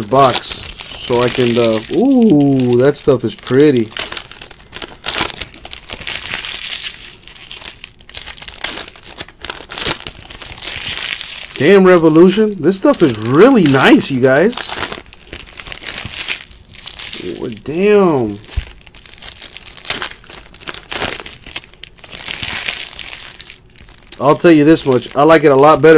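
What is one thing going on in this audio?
Foil card wrappers crinkle and tear in hands close by.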